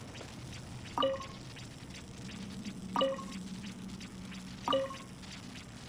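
A stone mechanism turns with a bright chiming click.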